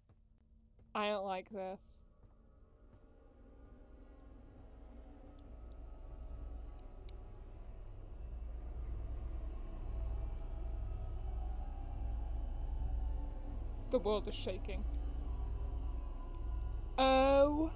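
A young woman speaks into a microphone with animation, gasping and exclaiming.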